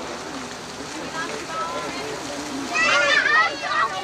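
Water splashes down a small waterfall.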